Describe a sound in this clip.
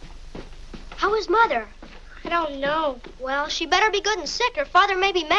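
A young boy speaks with animation.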